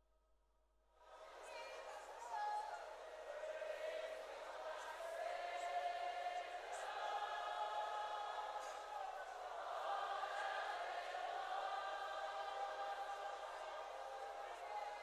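A man sings loudly through a microphone in a large echoing hall.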